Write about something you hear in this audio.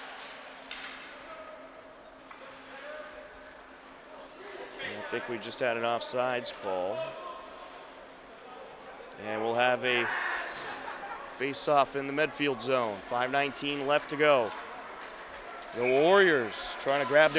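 Skate blades scrape across ice.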